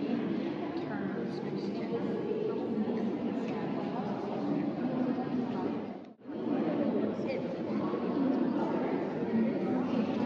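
A crowd of adults murmurs and chatters in a large echoing hall.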